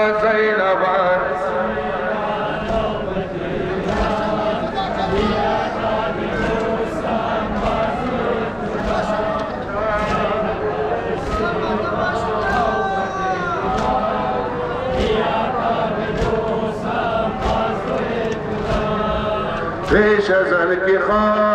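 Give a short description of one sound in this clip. A crowd of men beats their chests in a steady rhythm.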